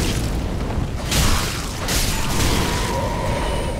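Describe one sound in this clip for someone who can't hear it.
A blade strikes with heavy metallic impacts.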